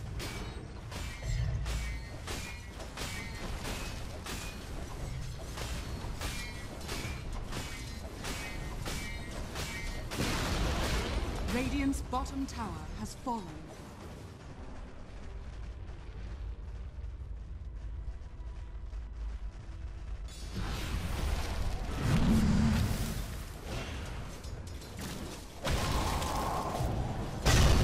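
Swords and weapons clash repeatedly.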